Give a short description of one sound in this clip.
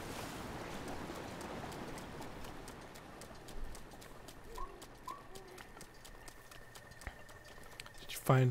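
Footsteps splash steadily through wet grass and shallow water.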